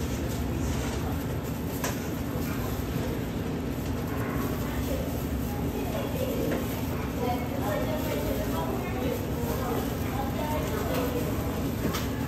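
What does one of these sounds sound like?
Gloved hands rustle a thin plastic bag.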